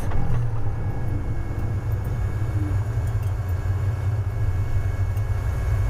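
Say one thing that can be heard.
A bus engine hums steadily at idle.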